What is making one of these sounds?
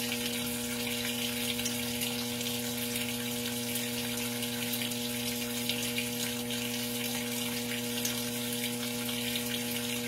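Water pours and splashes steadily into a washing machine tub.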